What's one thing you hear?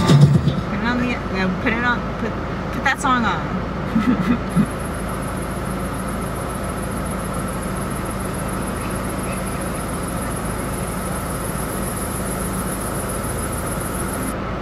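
A car engine hums steadily inside the cabin.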